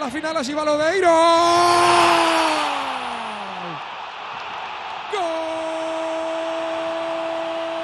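A large crowd cheers and roars in a stadium.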